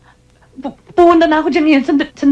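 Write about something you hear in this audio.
A young woman speaks into a telephone, close by.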